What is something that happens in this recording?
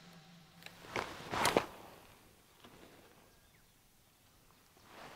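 A fishing rod swishes through the air in a cast.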